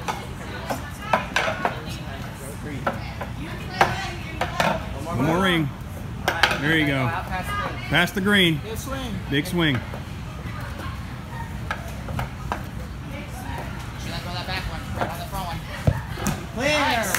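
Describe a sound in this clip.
Hand grips knock against a metal climbing frame.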